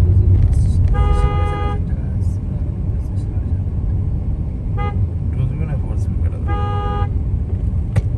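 A horn honks in short blasts on the busy street.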